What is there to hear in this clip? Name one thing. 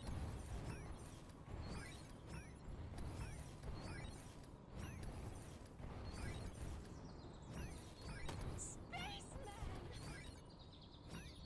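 A game character leaps and lands with repeated whooshing energy bursts.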